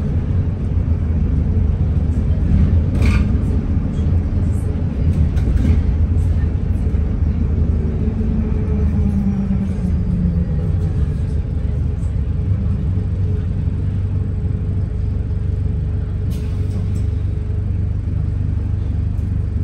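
A bus engine rumbles steadily from inside the moving bus.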